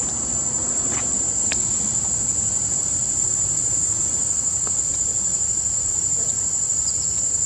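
A baby monkey squeals and shrieks.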